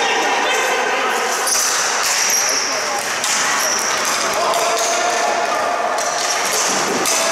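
Young players shout and call out in a large echoing arena.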